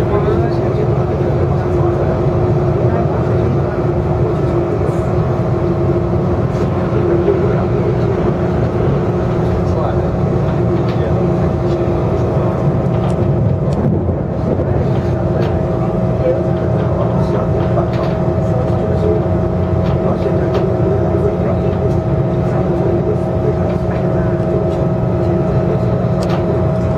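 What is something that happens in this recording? A train rumbles steadily along the tracks with a loud, low drone and a humming whine.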